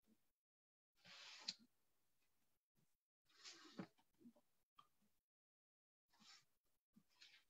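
Clothing rustles against a microphone as a man shifts about.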